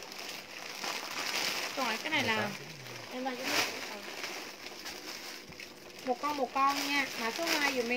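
A plastic bag crinkles and rustles in a young woman's hands.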